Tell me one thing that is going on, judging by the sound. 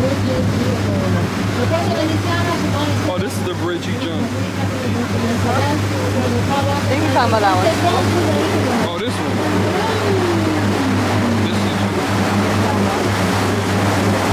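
Water splashes and rushes behind a moving boat.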